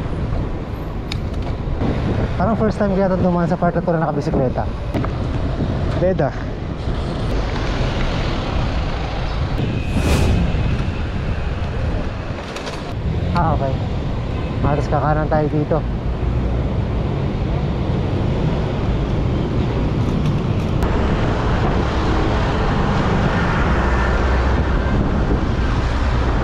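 Wind rushes and rumbles against the microphone.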